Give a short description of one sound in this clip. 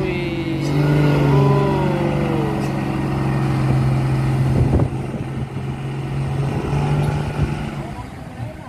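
A heavy truck engine rumbles loudly close by and slowly drives away.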